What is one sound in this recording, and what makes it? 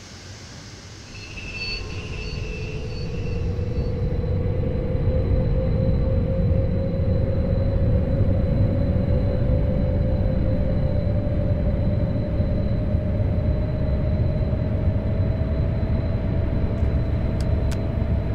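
Train wheels rumble steadily on the rails, growing louder.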